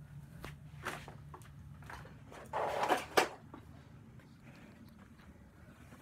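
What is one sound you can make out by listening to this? Clothing rustles and rubs right up close.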